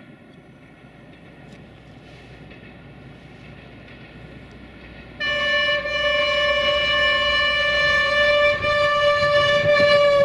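A diesel train rumbles closer along the tracks.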